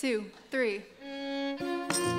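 A violin plays sustained notes.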